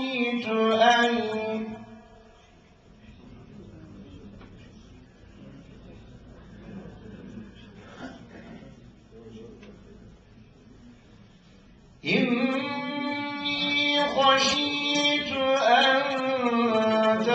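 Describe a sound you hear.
A man chants in a sustained melodic voice through a microphone.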